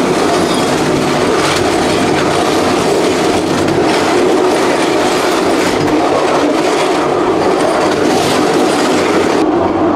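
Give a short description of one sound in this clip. A train rumbles and clatters steadily along the track.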